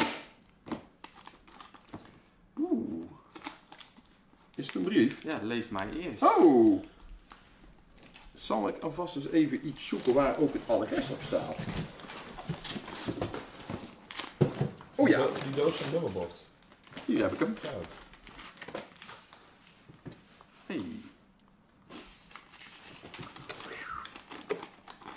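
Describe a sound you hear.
Paper and cardboard rustle as packages are opened.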